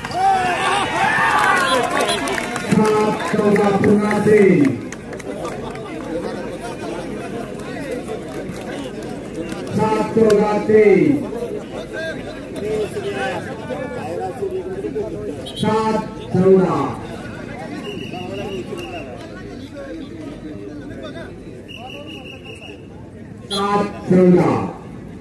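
Young men shout loudly to one another outdoors.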